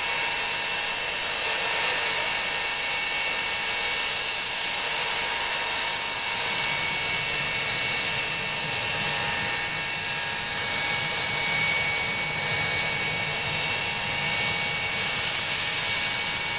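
The jet engines of an Ilyushin Il-76 four-engine transport whine as it taxis.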